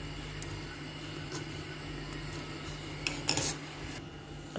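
A spoon stirs liquid in a metal pot.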